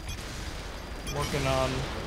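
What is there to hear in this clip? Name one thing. An explosion booms and flames roar.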